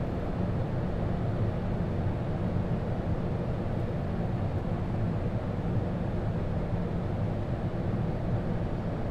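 Air rushes steadily past the aircraft.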